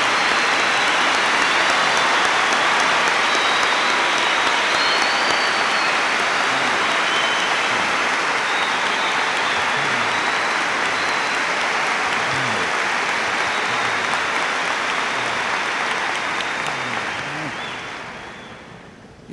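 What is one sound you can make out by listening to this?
A large crowd applauds loudly and steadily, then fades.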